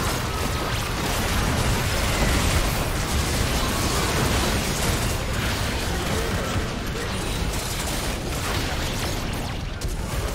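Game spell effects crackle and burst during a fight.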